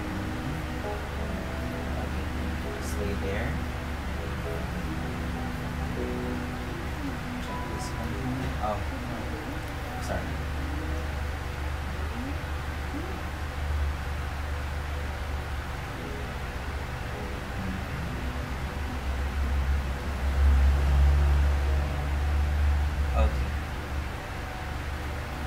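Clothing rustles softly as hands rub an arm.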